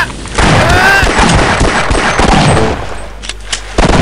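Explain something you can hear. Shotgun blasts boom in quick bursts.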